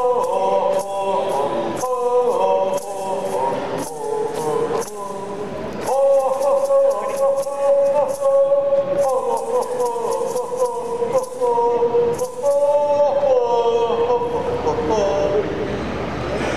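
A man sings loudly into a microphone through loudspeakers.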